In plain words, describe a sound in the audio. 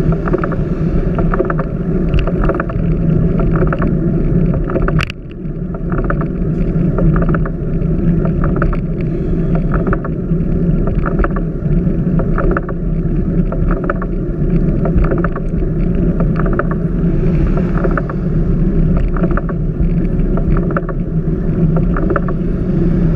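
Wind rushes and buffets past a microphone on a moving bicycle.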